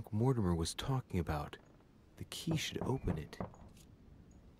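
A man speaks quietly and gravely, close by.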